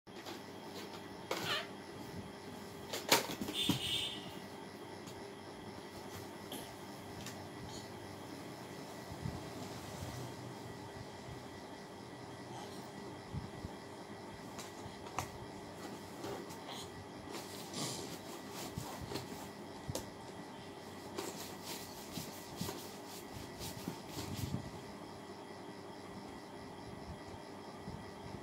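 A baby babbles softly close by.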